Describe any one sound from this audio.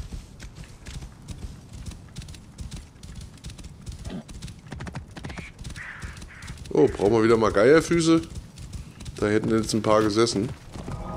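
Horse hooves thud rapidly on sand at a gallop.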